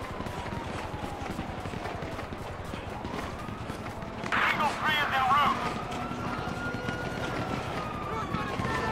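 Footsteps run quickly over ground and pavement.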